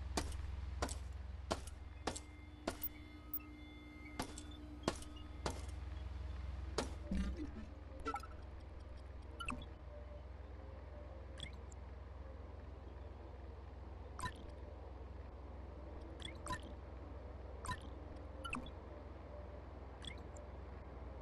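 Game menu clicks and beeps sound sharply, one after another.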